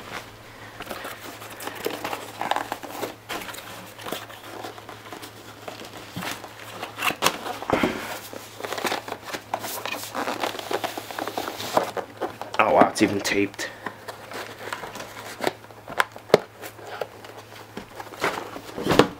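Cardboard rustles and scrapes as hands handle a box.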